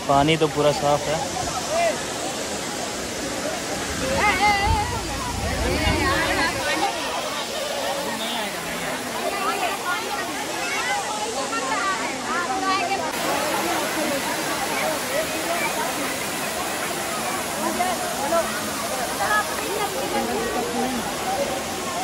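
A crowd of people chatter and call out nearby outdoors.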